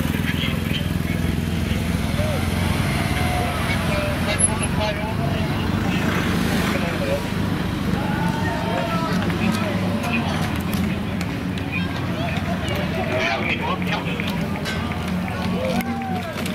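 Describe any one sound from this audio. An ambulance engine hums as it drives slowly past.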